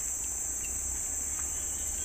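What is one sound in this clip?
A metal pot lid clinks softly.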